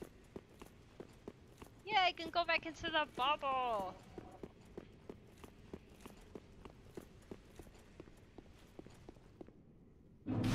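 Footsteps clank rhythmically on stone.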